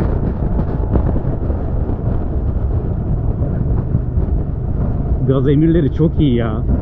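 A motorcycle engine hums steadily underneath.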